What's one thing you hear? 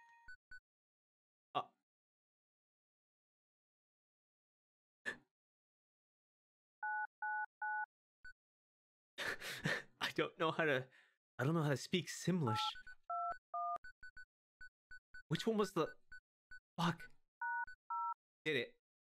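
Short electronic blips sound as a menu cursor moves and selects.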